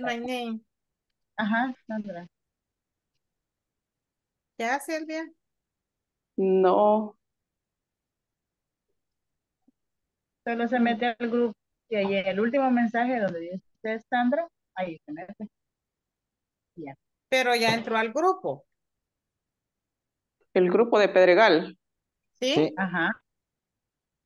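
A woman speaks in short phrases through an online call, with pauses between them.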